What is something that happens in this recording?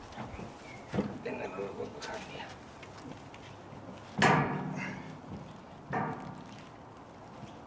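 A man talks.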